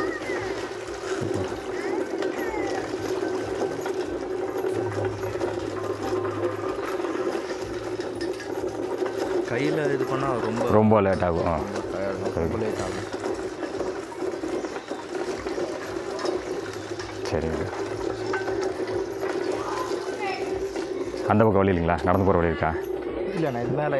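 A grain milling machine hums and rattles steadily.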